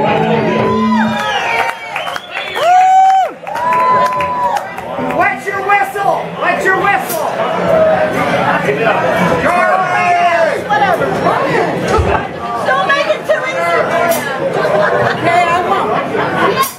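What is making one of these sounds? Electric guitars play loudly through amplifiers.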